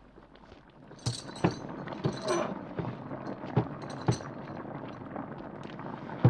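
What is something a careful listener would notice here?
Wood creaks and knocks as it is hauled.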